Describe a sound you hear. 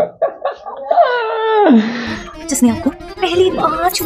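A woman exclaims in surprise, heard through a television's sound.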